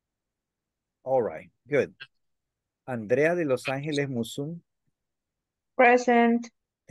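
A man speaks with animation over an online call, with pauses.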